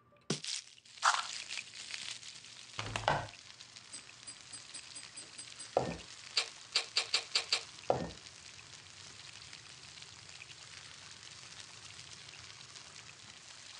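Corn sizzles on a hot grill pan.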